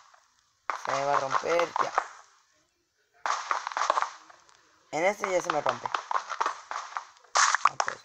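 A pickaxe chips and crunches into blocks of stone and dirt.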